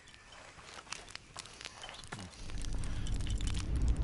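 A campfire crackles and pops.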